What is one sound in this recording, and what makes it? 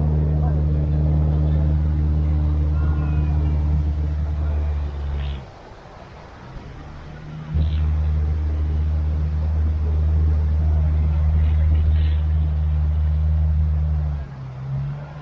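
A car engine idles nearby with a steady low hum.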